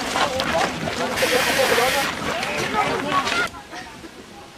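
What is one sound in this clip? A crowd of young people chatter outdoors.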